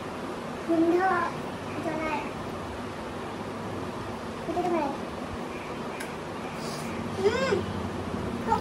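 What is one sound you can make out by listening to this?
A young woman speaks playfully and close by.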